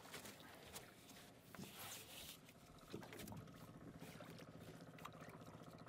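Water laps against a small boat.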